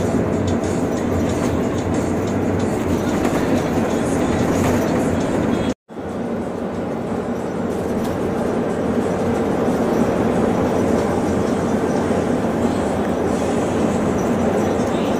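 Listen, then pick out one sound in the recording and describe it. Tyres roll with a steady rumble on a concrete road.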